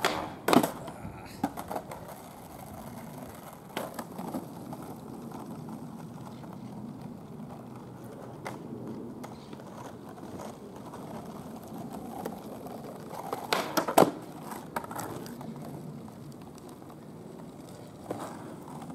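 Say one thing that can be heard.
Skateboard wheels roll and rumble over asphalt.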